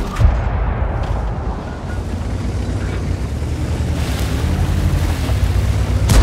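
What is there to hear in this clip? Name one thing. A tank's tracks clank and grind over dirt.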